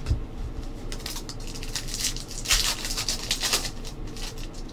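A foil wrapper crinkles as it is torn open.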